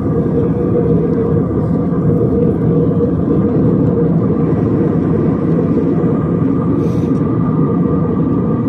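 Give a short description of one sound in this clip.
A jet engine roars steadily inside an airplane cabin.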